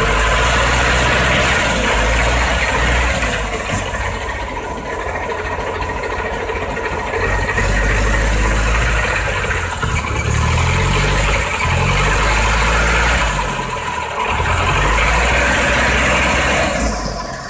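Tyres churn through thick mud and water.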